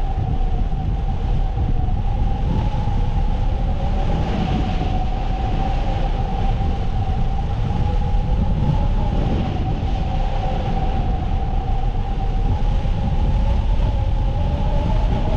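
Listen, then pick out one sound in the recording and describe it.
Wind rushes and buffets loudly and steadily, as if outdoors at speed.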